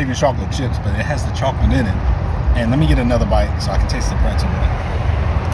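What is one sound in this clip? A young man talks animatedly and close by.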